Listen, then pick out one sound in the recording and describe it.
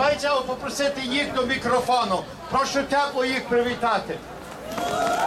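A man speaks loudly into a microphone over a loudspeaker outdoors.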